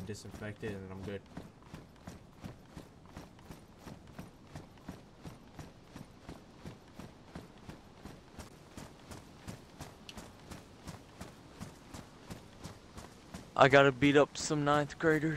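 Footsteps thud quickly and evenly on dirt and grass.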